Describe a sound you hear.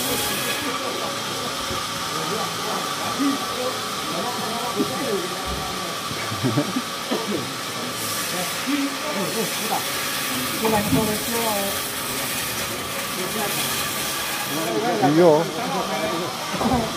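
Men talk and call out to each other nearby.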